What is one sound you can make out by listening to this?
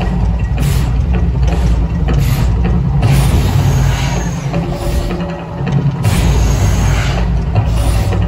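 Gas flames burst from the water with deep whooshing roars.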